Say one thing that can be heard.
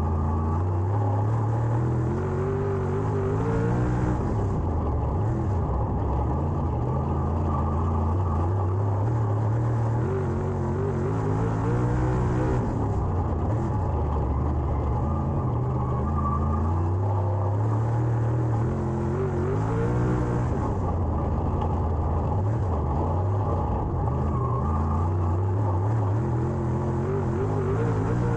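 Tyres rumble and crunch over a dirt track.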